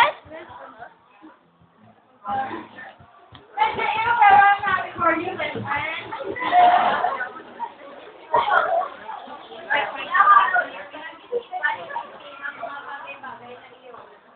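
Young girls talk and shout excitedly nearby.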